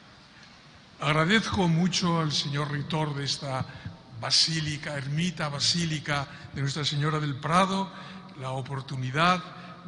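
A man chants in a steady voice through a microphone in a large echoing hall.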